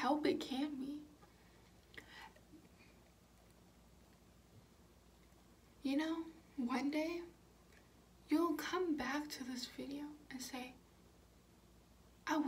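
A young woman talks close to a microphone, calmly and in short bursts.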